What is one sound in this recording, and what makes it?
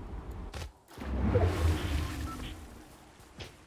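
Water splashes as a character lands in a river.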